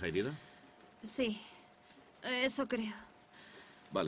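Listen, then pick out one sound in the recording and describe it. A young woman answers weakly and breathlessly.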